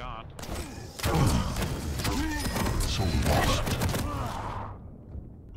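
Gunfire and explosions burst in a video game.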